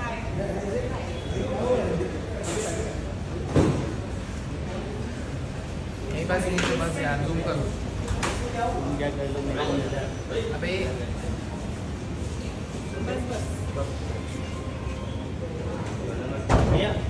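Men and women talk nearby in a crowd.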